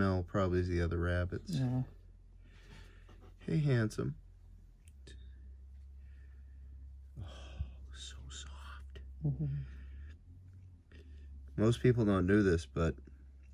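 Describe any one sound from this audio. A hand softly rubs a rabbit's fur.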